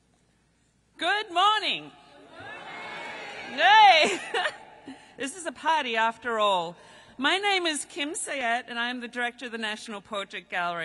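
A middle-aged woman speaks with animation through a microphone and loudspeakers.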